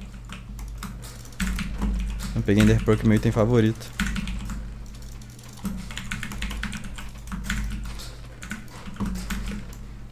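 Short game clicks pop as items are moved between slots.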